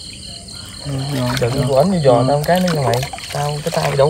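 Water splashes as a basket is dipped and lifted out.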